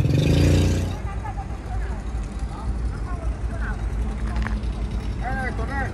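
A motorbike engine hums nearby.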